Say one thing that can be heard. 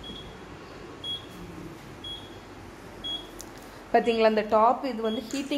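An oven beeps with short high tones about once a second.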